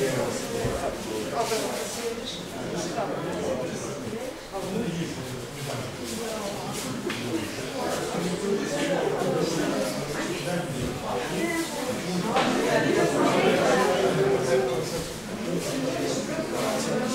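Several people talk in a large echoing hall.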